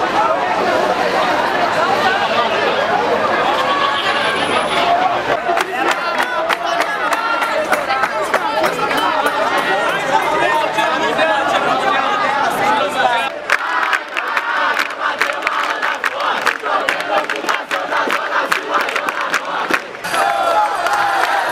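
A crowd of young people shouts and chants loudly outdoors.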